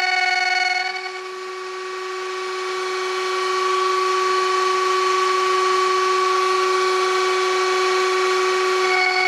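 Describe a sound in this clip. Wood shavings hiss as a router cuts into spinning wood.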